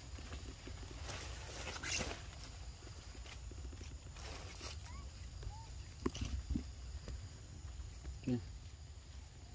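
A monkey chews and smacks wetly on soft fruit.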